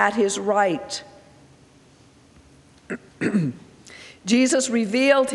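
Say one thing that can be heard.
A middle-aged woman speaks calmly into a microphone, with pauses.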